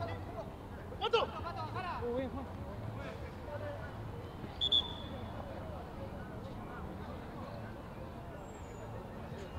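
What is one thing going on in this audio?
Young men shout and call out to each other across an outdoor field.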